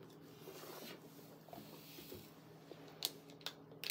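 A plastic bottle clicks and crinkles in small hands.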